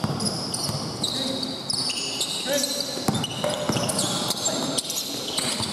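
Sneakers squeak sharply on a court floor in a large echoing hall.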